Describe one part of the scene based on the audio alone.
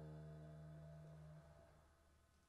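A bass guitar note rings low and dies out.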